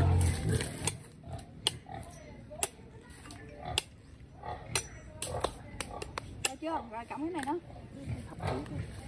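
A machete chops at bamboo stalks with sharp knocks.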